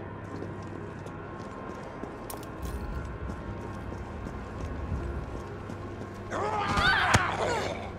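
Footsteps tap on hard ground.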